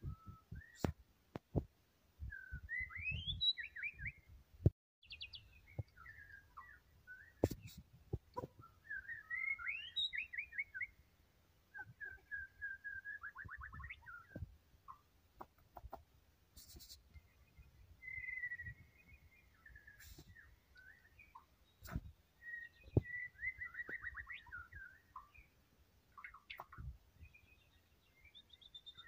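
A songbird sings close by in varied whistles, trills and chirps.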